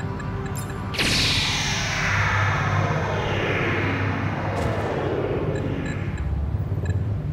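A laser beam fires with a long, falling electronic whine.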